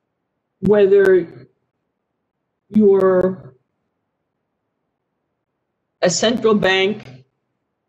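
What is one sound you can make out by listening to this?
A middle-aged woman speaks in short, expressive phrases over an online call.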